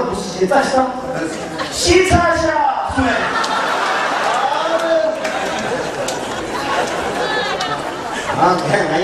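A man speaks with animation into a microphone, heard through loudspeakers in a large echoing space.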